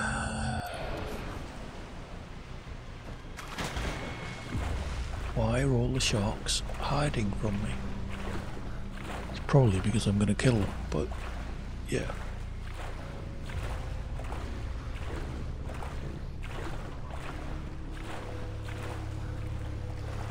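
Water splashes gently as a swimmer strokes through it.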